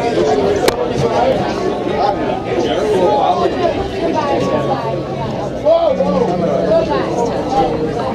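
A guitar is strummed nearby.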